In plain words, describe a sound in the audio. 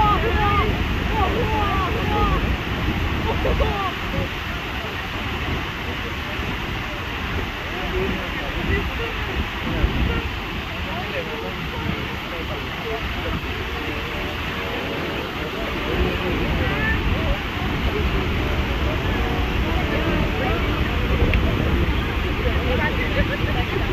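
A waterfall roars steadily close by.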